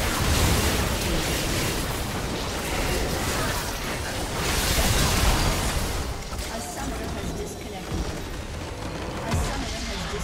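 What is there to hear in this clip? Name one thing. Spell blasts and weapon hits crash and clatter in a dense game battle.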